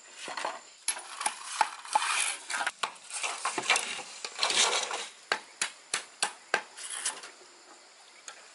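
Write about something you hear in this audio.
A machete chops into bamboo with sharp repeated knocks.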